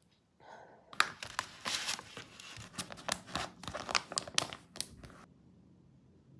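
A plastic packet crinkles and rustles loudly up close.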